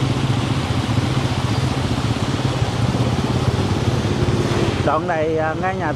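Motorbike tyres splash through floodwater.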